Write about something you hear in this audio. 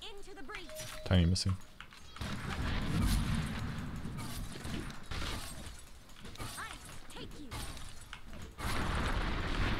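Game spell effects whoosh and crash in bursts.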